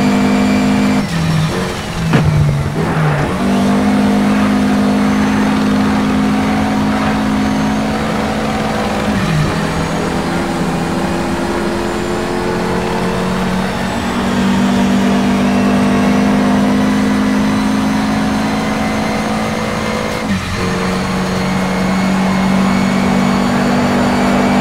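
A racing car engine roars loudly, its pitch dropping briefly at each gear change.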